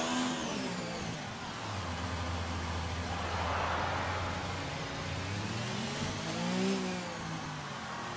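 A racing car engine revs hard, rising and falling as it shifts gears.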